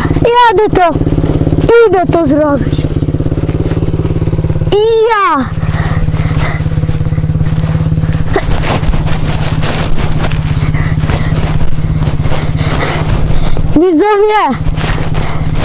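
A dirt bike engine revs sharply in short bursts.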